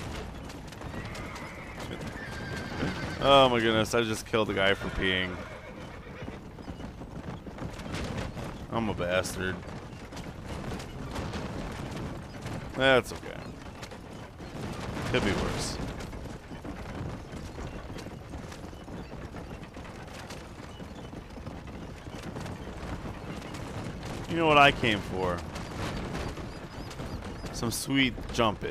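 A horse-drawn wagon rolls and creaks over a dirt trail.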